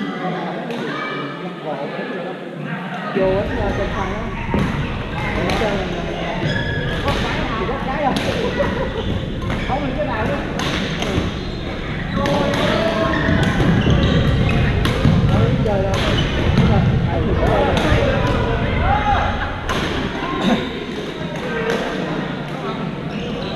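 Paddles smack a plastic ball back and forth in a large echoing hall.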